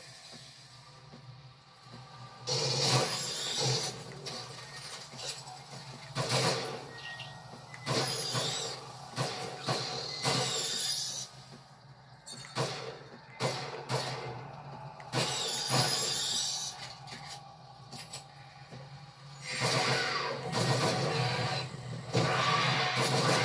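Game creatures screech and roar through a television speaker.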